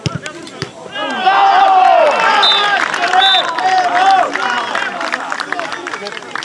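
A crowd of spectators cheers and shouts loudly outdoors.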